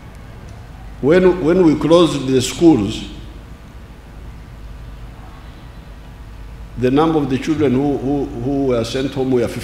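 An elderly man speaks slowly and firmly through a microphone and loudspeakers, outdoors.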